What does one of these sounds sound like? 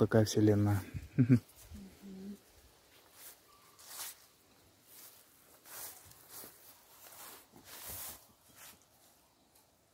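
A hand pats and taps on rusty metal.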